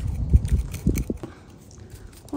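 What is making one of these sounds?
A wooden spatula scrapes through loose soil.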